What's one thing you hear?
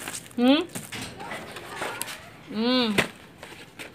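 A hand brushes against plastic packaging.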